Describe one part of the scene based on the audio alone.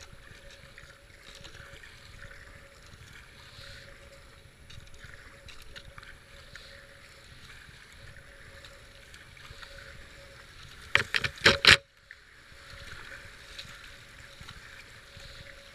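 A paddle splashes into the water in regular strokes.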